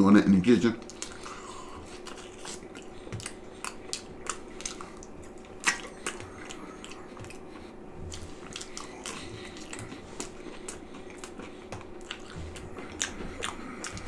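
A man chews and smacks his lips close to a microphone.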